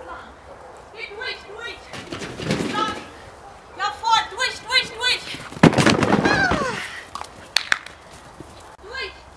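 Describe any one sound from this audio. A dog barks excitedly in short, high bursts.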